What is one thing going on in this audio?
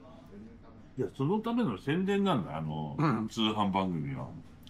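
An older man talks calmly close by.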